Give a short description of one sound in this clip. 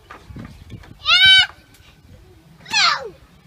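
A young child squeals loudly.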